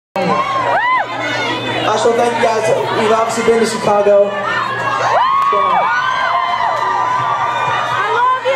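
A crowd of young fans screams and cheers loudly close by.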